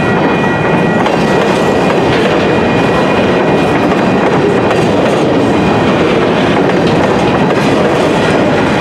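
A railroad crossing bell rings steadily.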